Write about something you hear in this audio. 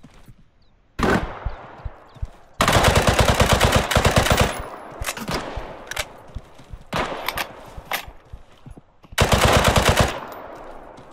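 A rifle fires loud rapid bursts of shots that echo outdoors.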